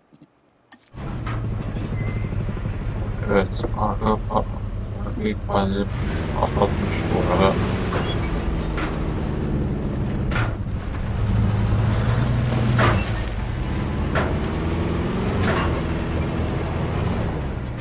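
A vehicle engine hums steadily.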